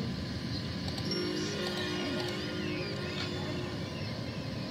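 A bright game chime rings out.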